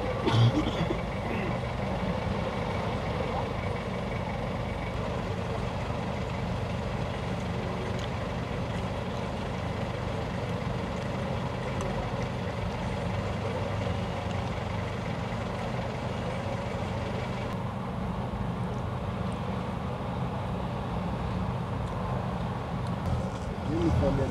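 A vehicle engine idles steadily nearby in traffic.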